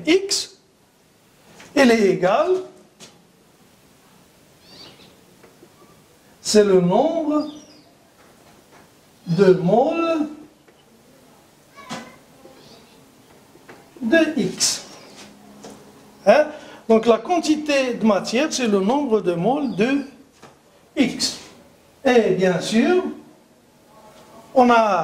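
An older man speaks calmly in bursts, with pauses, close by.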